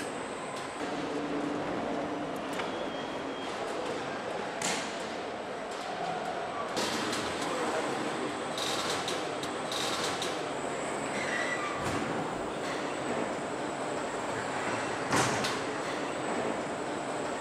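Machines clank and whir in a large echoing hall.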